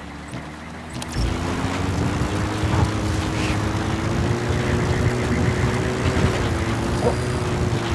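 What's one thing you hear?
A vehicle engine hums steadily and rises and falls as it drives over sand.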